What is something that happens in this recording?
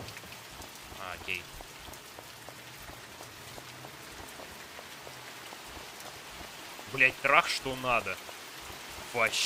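Light rain falls steadily outdoors.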